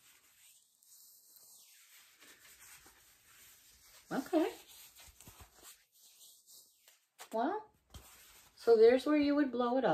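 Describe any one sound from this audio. Soft fabric rustles as it is handled.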